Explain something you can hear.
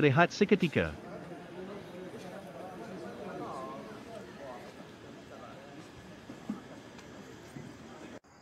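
Several people talk quietly in the distance outdoors.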